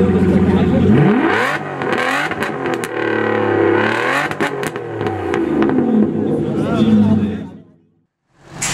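A V12 sports car revs hard, its engine rising and falling.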